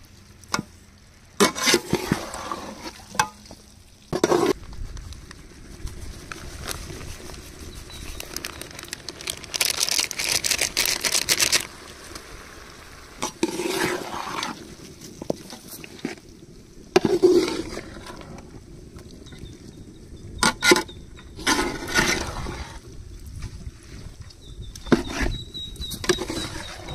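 A metal spatula scrapes and clanks against a metal pot.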